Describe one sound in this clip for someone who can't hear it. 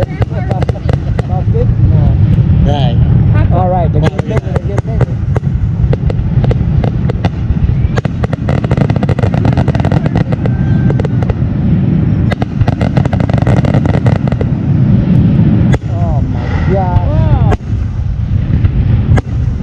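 Fireworks bang and crackle in rapid bursts.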